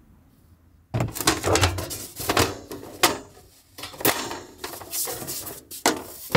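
A metal grid panel rattles and clatters as it is lifted.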